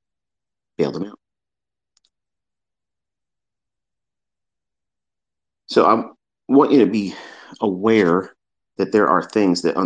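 A man speaks with animation close to a microphone, in short bursts.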